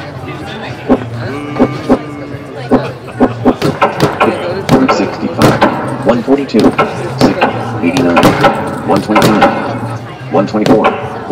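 Gloved punches thud against a padded bag in quick bursts.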